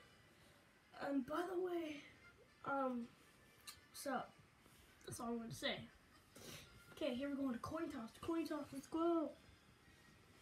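A young boy talks up close in short, lively bursts.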